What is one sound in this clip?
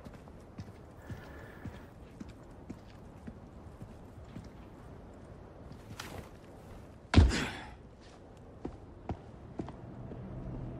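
Footsteps tread on stone.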